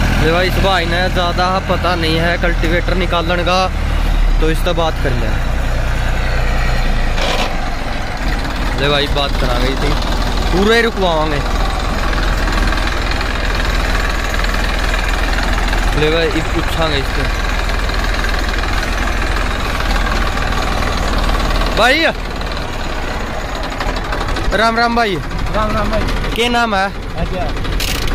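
A tractor engine runs with a steady low rumble.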